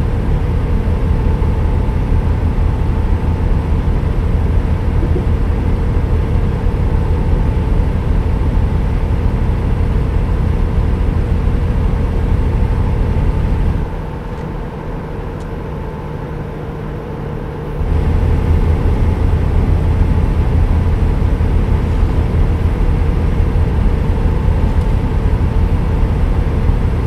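A heavy truck engine drones steadily at speed, briefly growing quieter.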